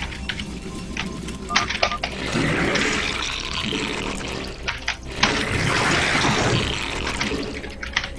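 Gunfire and explosions crackle in a video game battle.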